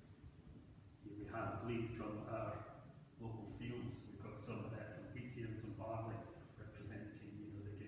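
A man reads aloud calmly in a large echoing hall.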